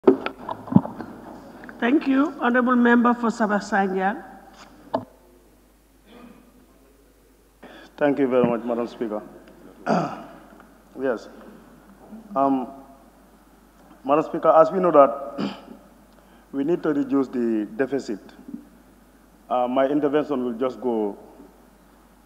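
A woman speaks calmly into a microphone, heard through a loudspeaker in a large room.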